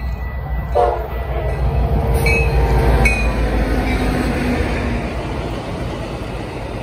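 A diesel locomotive engine roars close by.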